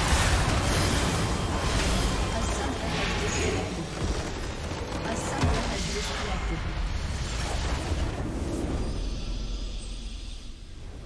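Game spells blast and crackle in a loud fight.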